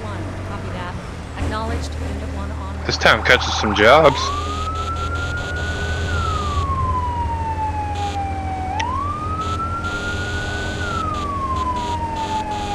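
A fire engine's engine rumbles steadily.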